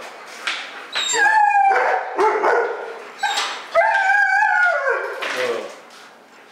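A husky howls.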